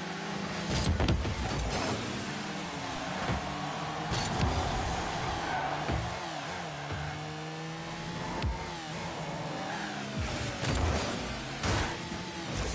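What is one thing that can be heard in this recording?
A ball is struck with loud thumps.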